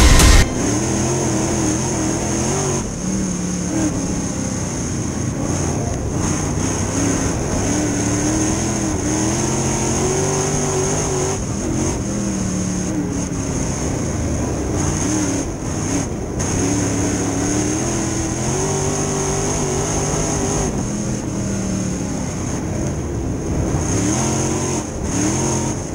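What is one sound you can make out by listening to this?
A race car engine roars loudly up close, its pitch rising and falling as it revs through the turns.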